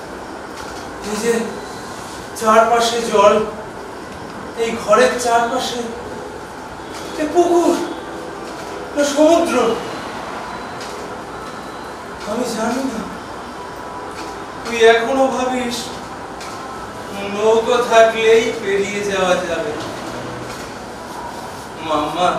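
A young man speaks dramatically in bursts, heard from across a room.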